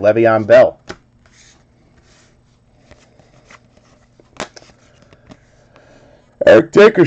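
Trading cards slide and click softly as hands shuffle through them.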